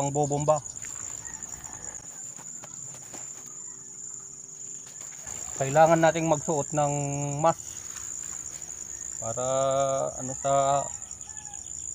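A man speaks calmly close by.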